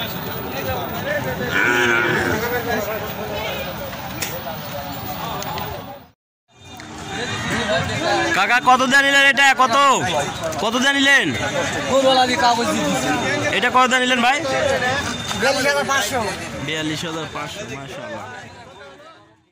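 Several men talk outdoors.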